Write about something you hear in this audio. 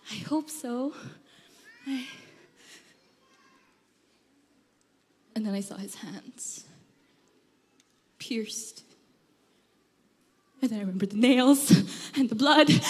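A young woman speaks expressively into a microphone, with long pauses.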